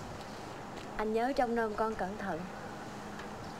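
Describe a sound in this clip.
A woman speaks softly and warmly, close by.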